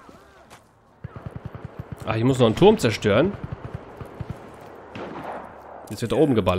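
Gunshots rattle in quick bursts.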